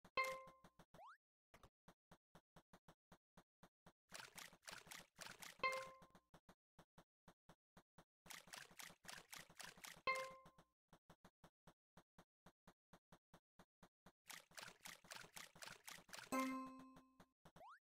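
Footsteps tap quickly and evenly.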